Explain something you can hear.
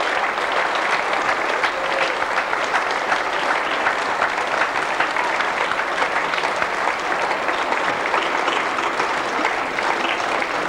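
Dancers' boots stamp on a stage in a quick rhythm.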